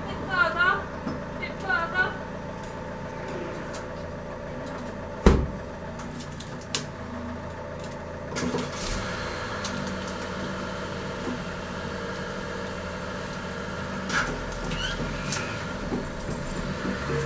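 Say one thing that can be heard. Small tools click and knock against a wooden door.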